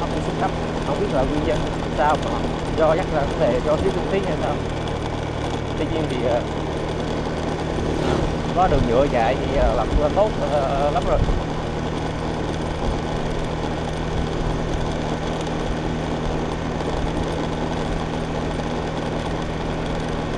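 A motorbike engine hums steadily at low speed.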